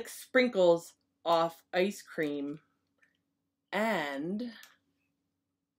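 A woman reads aloud close by, in a lively, sing-song way.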